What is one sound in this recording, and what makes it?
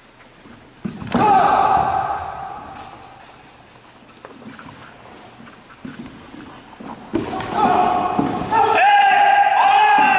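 Karate fighters shout sharply as they strike.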